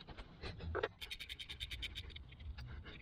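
A metal tool clicks rapidly against a bolt.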